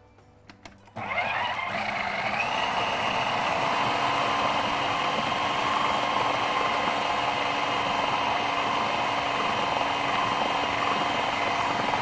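A food processor whirs loudly and steadily.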